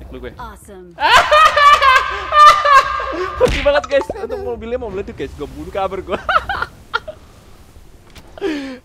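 A young man laughs loudly and shouts.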